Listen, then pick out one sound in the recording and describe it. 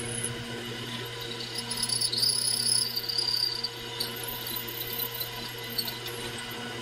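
A drill bit grinds into metal with a high squeal.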